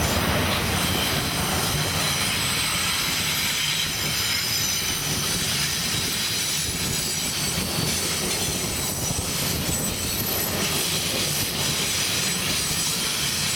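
A passenger train rumbles past close by, its wheels clacking steadily on the rails.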